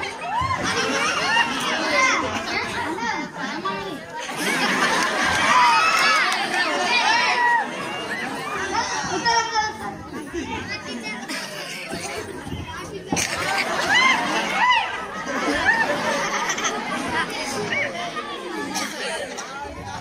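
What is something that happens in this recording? A second boy answers loudly into a microphone over loudspeakers.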